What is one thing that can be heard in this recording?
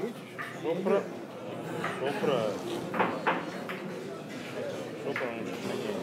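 Billiard balls click against each other.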